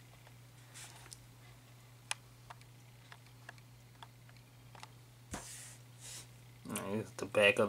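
Plastic parts of a toy figure click softly as hands move them.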